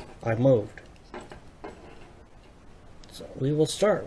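Keys jingle on a padlock.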